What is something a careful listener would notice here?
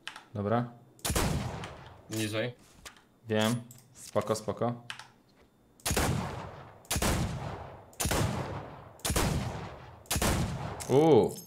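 Rifle shots crack loudly, each followed by a short echo.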